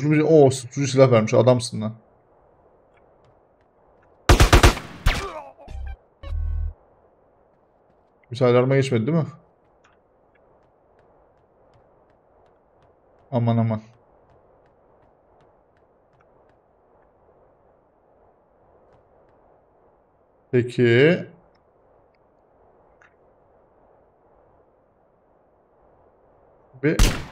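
A man talks into a close microphone in short bursts.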